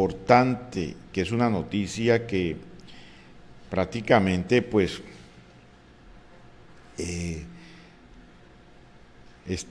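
A middle-aged man speaks calmly into a close microphone, in bursts with pauses.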